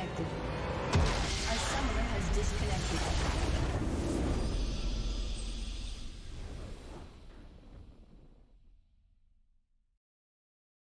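A triumphant video game victory fanfare swells and then fades to silence.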